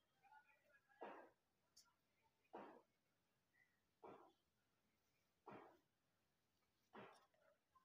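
Cloth rustles as hands move it.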